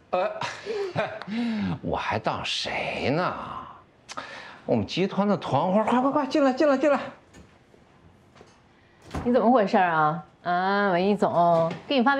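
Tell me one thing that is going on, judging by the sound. A man laughs.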